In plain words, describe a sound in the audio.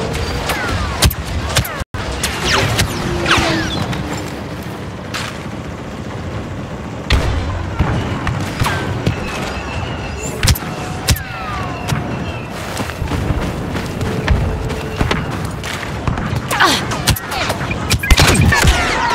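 Laser bolts whizz past overhead.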